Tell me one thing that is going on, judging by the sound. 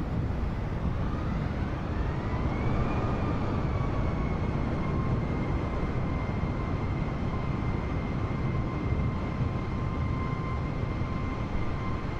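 A jet airliner's engines whine, rising in pitch and then holding steady.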